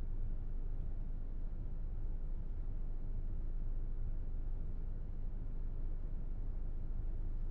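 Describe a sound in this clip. A train's motor hums low and steady while standing still.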